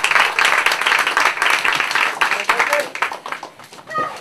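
A crowd cheers and claps loudly in a hall.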